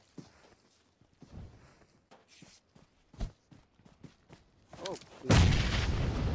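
Footsteps thud on hard ground at a steady running pace.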